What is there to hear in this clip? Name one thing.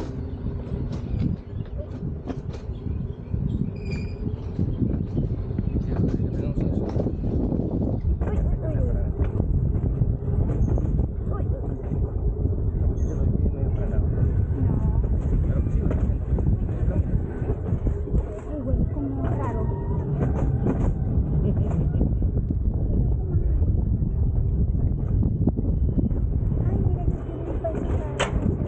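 A mountain coaster sled rumbles and rattles steadily along its metal track.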